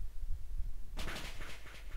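A crackling electric zap bursts out.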